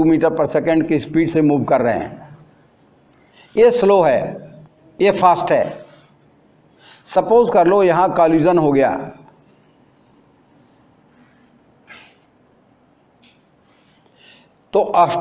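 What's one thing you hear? An elderly man explains calmly in bursts, close to a microphone.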